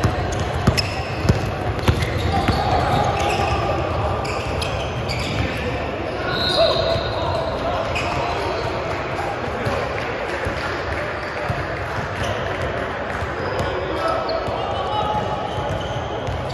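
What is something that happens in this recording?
Men call out to each other across an echoing gym.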